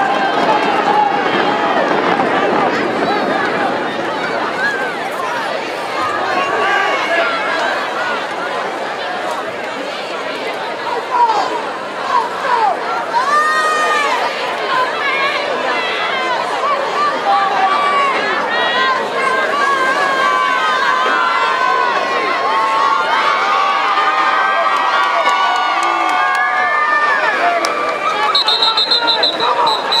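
A large crowd of men and women chatters and cheers outdoors.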